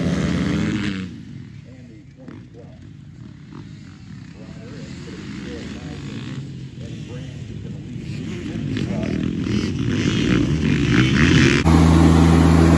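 Dirt bikes drone far off across open ground.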